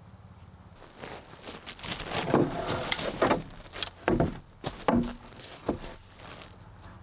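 Wooden boards knock and clatter against each other.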